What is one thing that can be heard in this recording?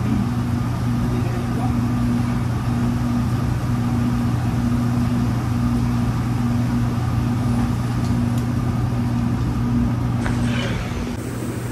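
A kitchen exhaust fan hums loudly and steadily.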